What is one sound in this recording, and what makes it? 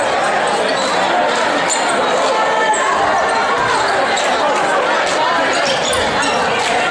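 A crowd chatters and cheers loudly in a large echoing gym.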